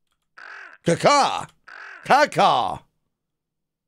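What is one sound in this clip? A cartoon crow caws twice, loud and close.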